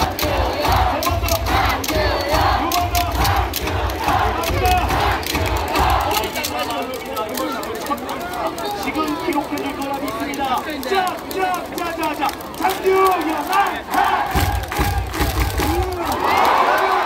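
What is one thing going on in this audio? A crowd claps in a fast rhythm.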